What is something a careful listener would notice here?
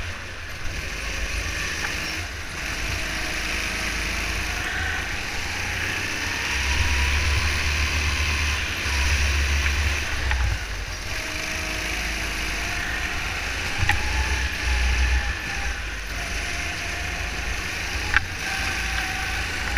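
A go-kart engine buzzes loudly and rises and falls in pitch as it races.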